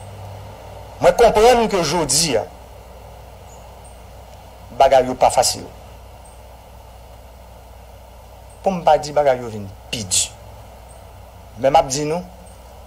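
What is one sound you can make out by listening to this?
A middle-aged man speaks slowly and formally into a microphone, with long pauses.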